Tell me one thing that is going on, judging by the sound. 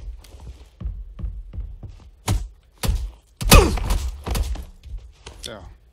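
Fists thud in quick punches.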